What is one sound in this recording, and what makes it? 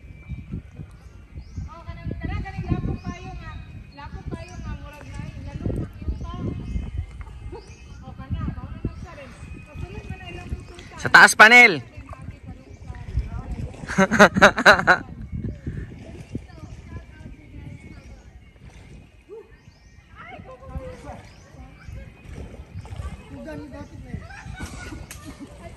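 River water laps gently.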